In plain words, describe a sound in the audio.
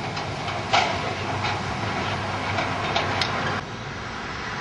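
Debris crashes and clatters as an excavator tears at rubble.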